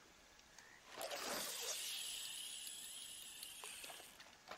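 A fishing reel whirs as line is cast out over water.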